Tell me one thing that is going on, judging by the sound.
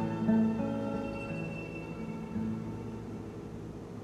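A guitar plays plucked notes that ring out.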